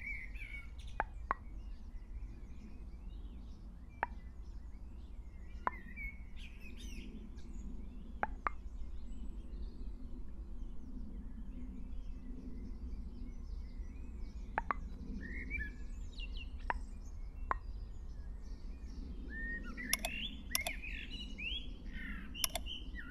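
Menu buttons click softly as options are selected.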